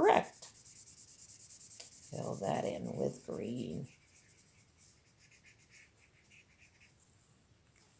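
A felt-tip marker squeaks softly across paper.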